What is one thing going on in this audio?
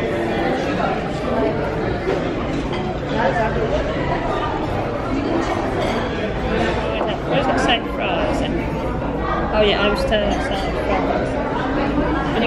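Many people chatter indistinctly in a busy, echoing room.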